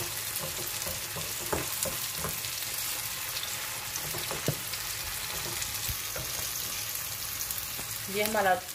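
Onions sizzle in oil in a frying pan.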